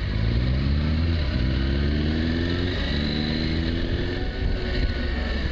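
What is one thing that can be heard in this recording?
A motorcycle engine revs and rises in pitch as it pulls away.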